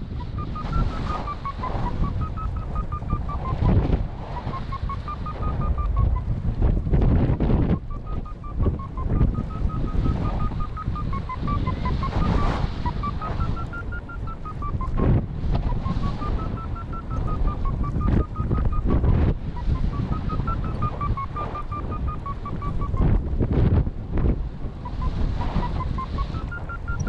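Wind rushes and buffets loudly.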